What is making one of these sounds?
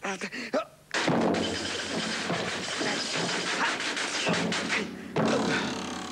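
A noisy scuffle crashes and clatters.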